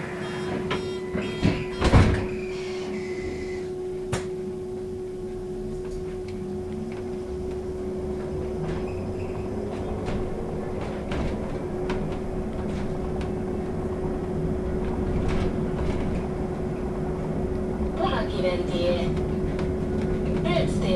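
An electric city bus motor whines steadily, heard from inside the bus.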